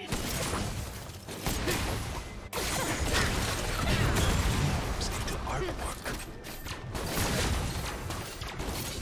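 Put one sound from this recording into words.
Game combat effects clash, zap and crackle in quick bursts.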